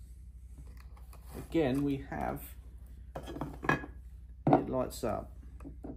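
A light model building slides and taps on a wooden table.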